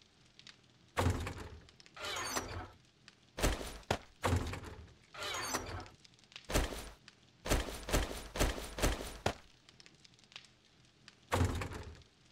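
A wooden chest lid creaks open and bangs shut several times.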